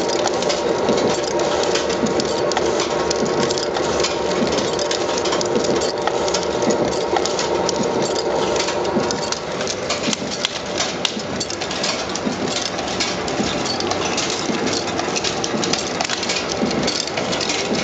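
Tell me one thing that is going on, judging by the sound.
A machine head spins with a loud, steady whirring hum.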